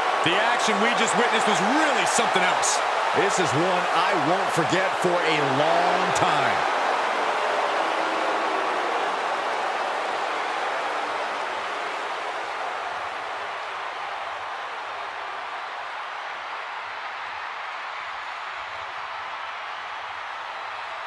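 A large crowd cheers and roars in a big arena, slowly fading.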